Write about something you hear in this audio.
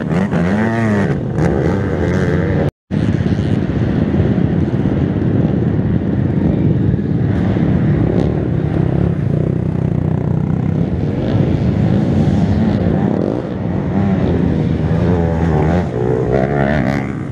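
A quad bike engine revs and roars loudly nearby, rising and falling in pitch.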